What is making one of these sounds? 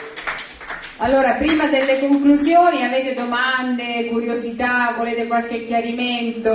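A woman sings into a microphone, heard through a loudspeaker.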